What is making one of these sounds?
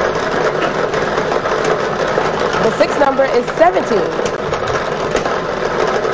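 Lottery balls rattle and clatter as they tumble in a machine.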